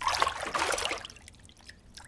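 Water drips into a basin.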